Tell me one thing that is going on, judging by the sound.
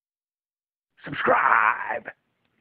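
A man shouts loudly through a small loudspeaker.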